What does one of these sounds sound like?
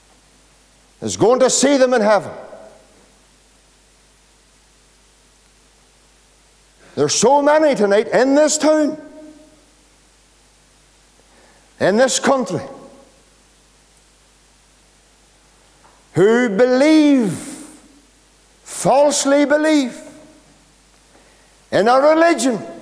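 A man preaches loudly with animation in short bursts, echoing in a large hall.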